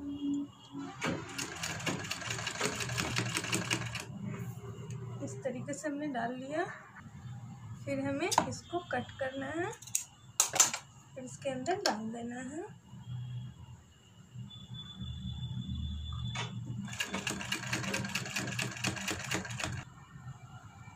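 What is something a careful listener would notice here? A sewing machine whirs in rapid bursts as it stitches.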